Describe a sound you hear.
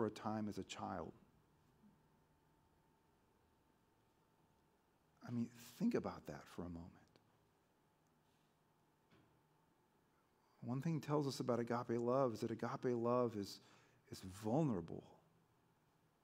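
A man speaks calmly through a microphone in a large room, pausing between phrases.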